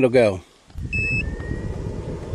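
A battery charger beeps.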